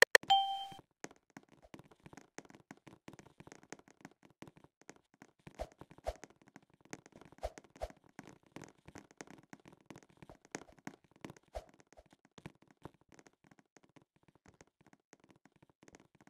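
Soft footsteps patter quickly as a game character runs.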